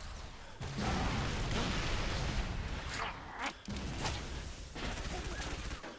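An energy weapon crackles with electric zaps.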